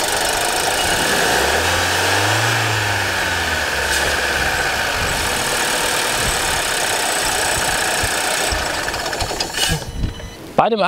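A car engine idles steadily up close, revving briefly.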